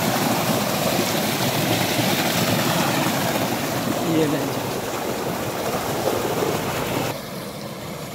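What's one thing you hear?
Water gushes from a pipe and splashes loudly into a pool.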